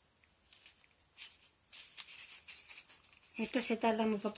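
Plastic wrap rustles faintly in hands.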